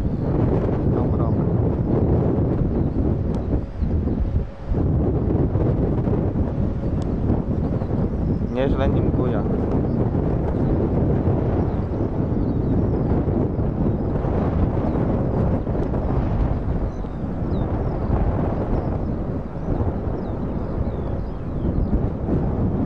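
A jet airliner roars steadily overhead on its approach.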